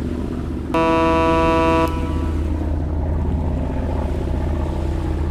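A large boat's engine rumbles steadily.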